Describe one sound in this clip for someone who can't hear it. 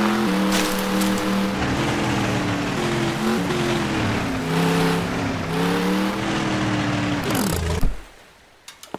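A truck engine roars and revs unevenly.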